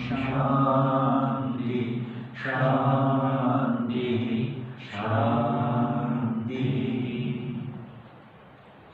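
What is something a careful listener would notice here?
An elderly man chants loudly into a close microphone.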